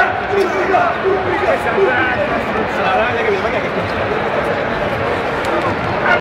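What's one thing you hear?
A crowd of men chants and shouts loudly in a large echoing arena.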